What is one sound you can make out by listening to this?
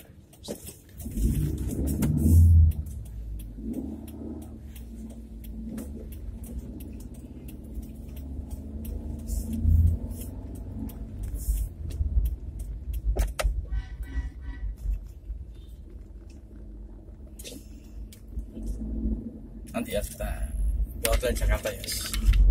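A car engine rumbles low and steady from inside the car.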